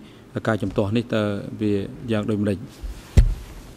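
A man speaks calmly and formally into a microphone.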